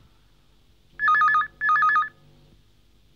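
A telephone rings twice with a trilling electronic ring.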